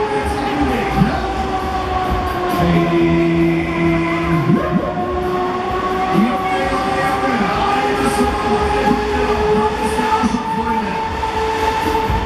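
A fairground ride whirls around with a steady rumble and whoosh of cars passing close by.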